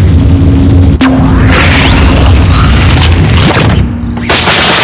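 A machine whooshes and hums as it starts up.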